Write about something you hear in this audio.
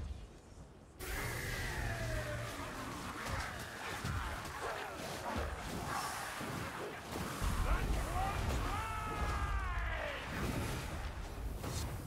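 Monsters shriek and snarl.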